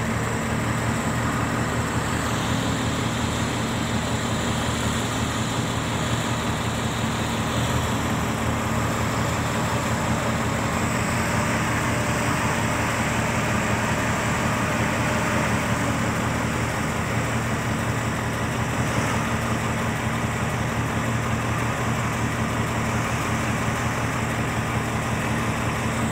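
A diesel dump truck engine rumbles as the truck drives past.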